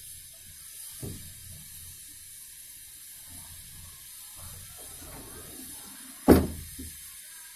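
A wooden sliding door rumbles along its track.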